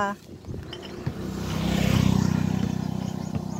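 A motorbike engine hums as it rides away.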